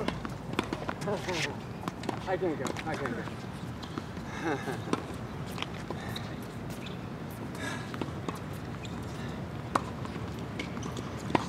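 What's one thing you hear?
Tennis balls pop off rackets outdoors.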